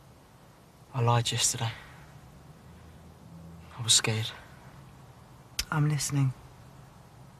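A young man speaks quietly in short phrases, close by.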